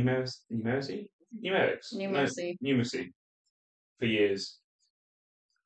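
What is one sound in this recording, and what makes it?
A young man speaks calmly into a nearby microphone.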